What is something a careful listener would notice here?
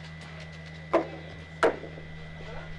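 Metal balls clack sharply against each other.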